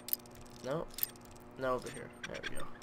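A screwdriver turns a lock cylinder with a creaking strain.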